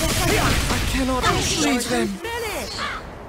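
A powerful energy blast roars and crackles.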